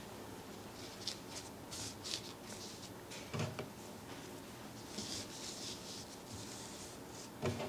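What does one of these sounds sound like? Paper cutouts rustle and slide softly over paper.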